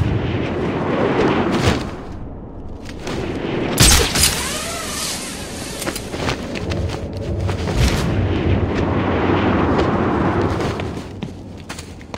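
Wind rushes loudly past a gliding figure's flapping cape.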